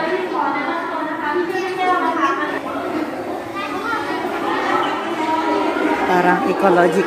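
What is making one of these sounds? Adults chatter nearby in an echoing hall.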